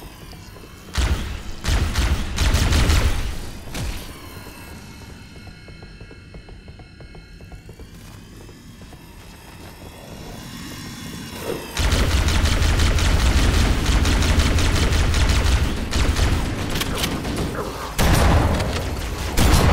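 An energy weapon fires rapid crackling shots.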